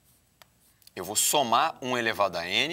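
A man speaks calmly and clearly, as if lecturing, close by.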